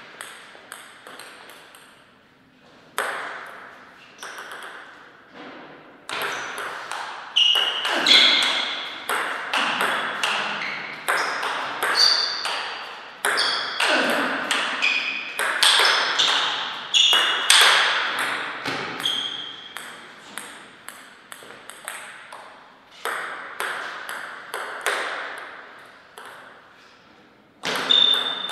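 A table tennis ball bounces on a table.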